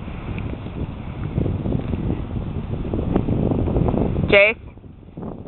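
A dog digs and scrapes at loose dirt close by.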